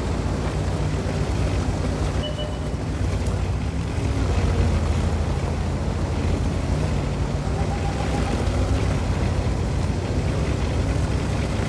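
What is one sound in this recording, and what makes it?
Tank tracks clank and rattle over the ground.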